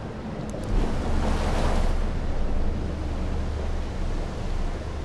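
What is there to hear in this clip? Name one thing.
Water splashes against the side of a raft.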